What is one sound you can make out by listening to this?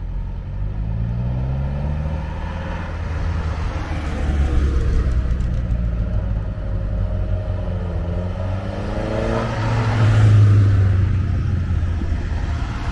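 Vintage cars drive past one after another, their engines rising and fading.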